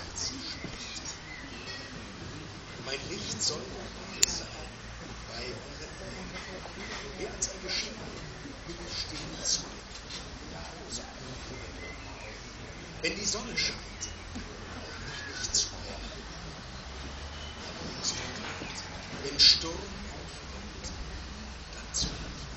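A man speaks calmly into a microphone, heard through loudspeakers outdoors.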